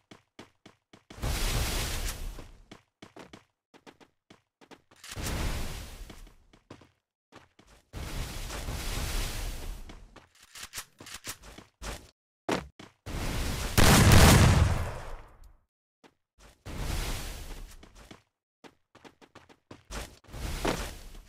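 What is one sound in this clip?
Quick footsteps patter on a hard surface.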